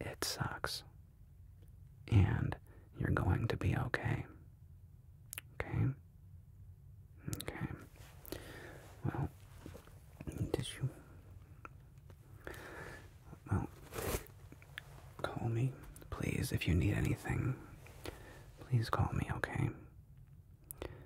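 A man speaks softly and slowly, close to a microphone.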